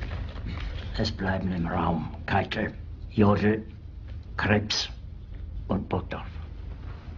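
An elderly man speaks in a low, strained voice, close by.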